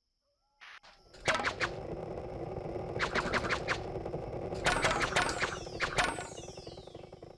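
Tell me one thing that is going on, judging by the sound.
Shots fire and targets burst with loud electronic pops.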